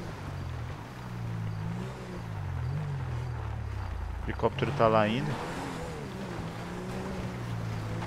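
Tyres roll over a gravel road.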